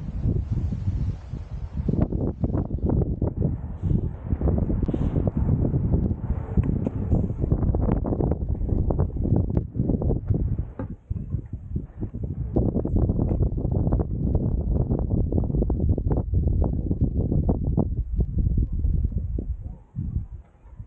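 Strong wind buffets the microphone outdoors.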